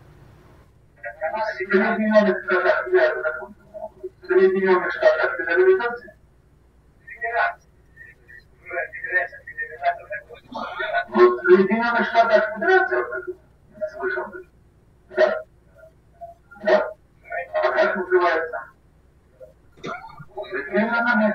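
An elderly man talks calmly over an online call.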